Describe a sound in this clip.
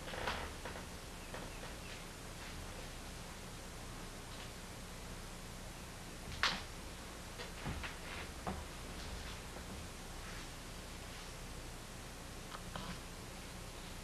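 A man speaks briefly and quietly nearby.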